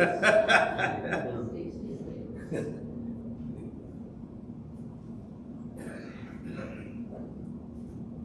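An elderly man talks calmly.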